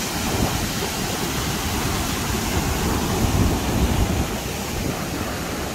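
A muddy flood river roars and rushes loudly nearby.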